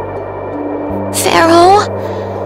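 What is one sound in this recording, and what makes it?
A young woman speaks near the end.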